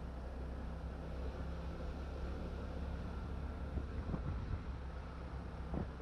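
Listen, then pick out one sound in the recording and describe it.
A large truck engine idles close by with a low hum.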